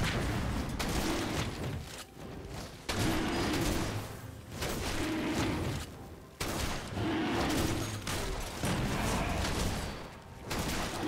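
Game combat effects clash and crackle in quick bursts.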